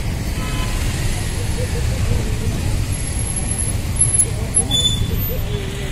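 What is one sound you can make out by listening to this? Traffic rumbles steadily past on a street.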